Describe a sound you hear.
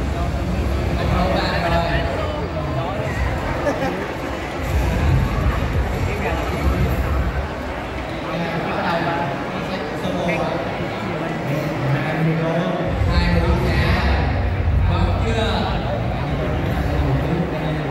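Music with bass plays loudly through loudspeakers.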